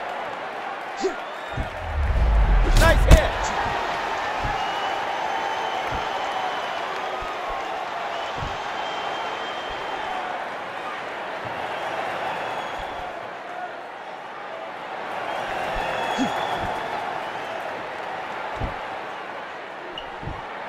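Punches thud against gloves and bodies.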